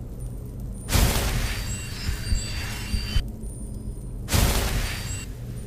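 A healing spell crackles and whooshes in bursts from a casting hand.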